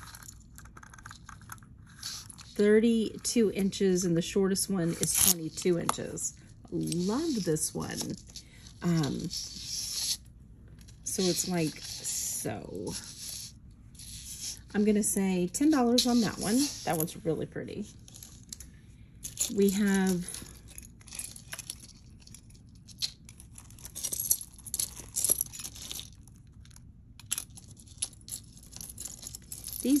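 Metal jewellery chains clink and rattle softly as they are handled.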